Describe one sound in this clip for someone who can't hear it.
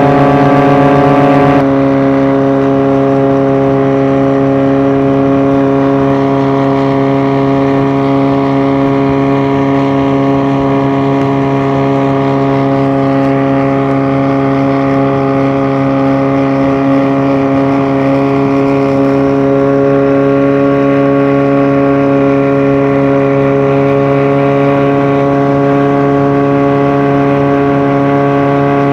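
A boat engine drones loudly and steadily.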